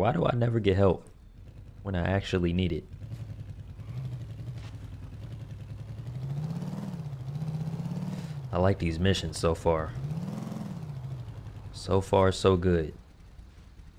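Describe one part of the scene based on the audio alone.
A motorcycle engine hums and revs up and down.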